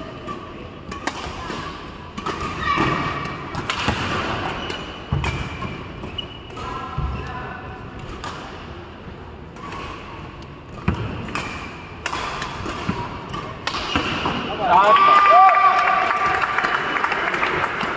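Shuttlecocks are struck with sharp pops of badminton rackets.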